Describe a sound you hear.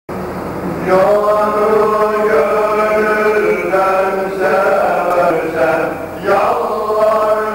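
A group of men chant together in a sustained, melodic religious hymn, heard through a microphone in an echoing hall.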